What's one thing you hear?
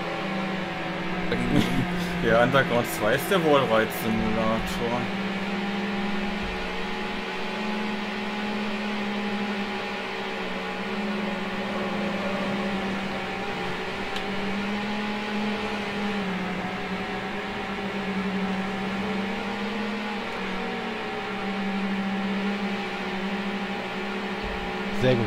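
A race car engine drones steadily at high speed, its pitch wavering slightly.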